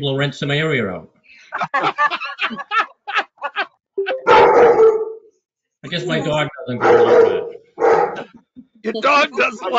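Several elderly people laugh over an online call.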